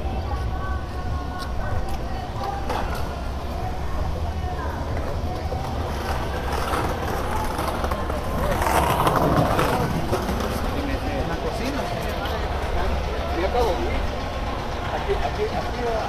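A crowd of men and women murmurs outdoors in a busy street.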